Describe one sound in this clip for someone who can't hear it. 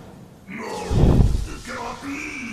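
A deep boom bursts out.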